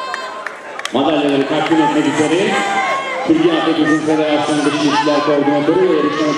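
Spectators shout and cheer loudly as runners pass.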